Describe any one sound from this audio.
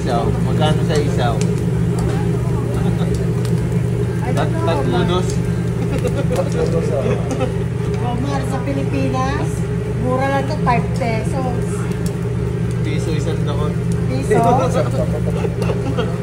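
Metal tongs clink against skewers on a grill.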